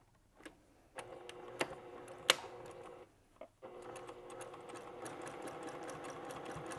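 A sewing machine hums and rattles as it stitches.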